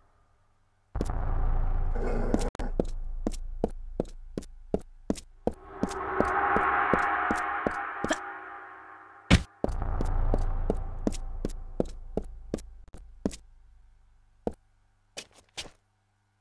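Quick footsteps run across a stone floor in an echoing space.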